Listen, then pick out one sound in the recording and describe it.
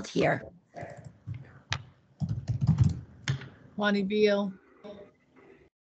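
A middle-aged woman talks calmly over an online call.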